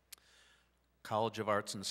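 A man reads out over a loudspeaker in a large echoing hall.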